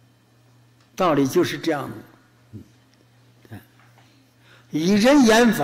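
An elderly man speaks calmly into a microphone, in short phrases.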